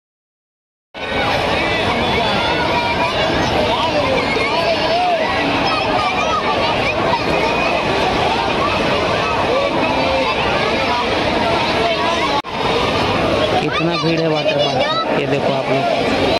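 A large crowd of men and women chatter all around outdoors.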